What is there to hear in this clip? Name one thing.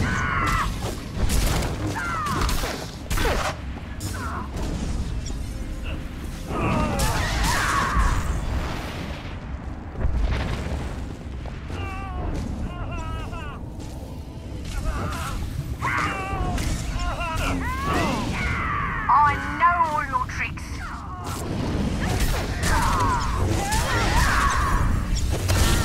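Lightsabers hum and clash with sharp crackling hits.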